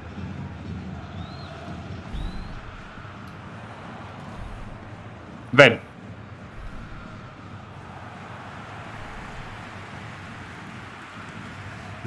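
A young man talks calmly into a microphone.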